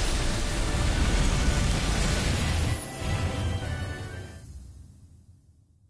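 A huge beast roars loudly and the roar fades away.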